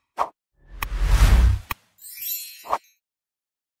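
A mouse button clicks several times.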